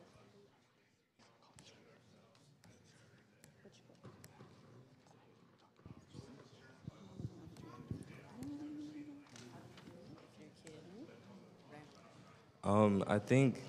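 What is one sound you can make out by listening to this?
An audience murmurs quietly in a large hall.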